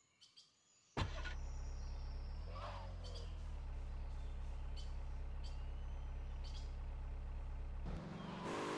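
A car engine starts and runs steadily.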